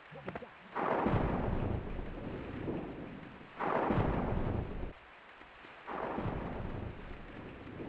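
A young man talks into a close microphone in a relaxed voice.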